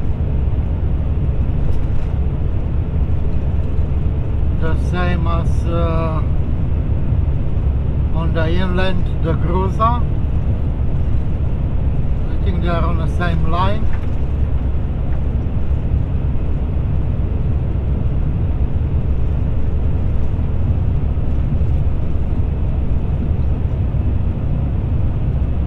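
A vehicle's engine drones steadily at cruising speed.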